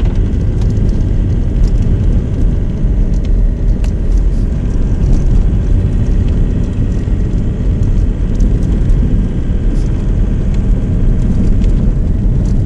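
Tyres crunch over packed snow, with small bumps and knocks.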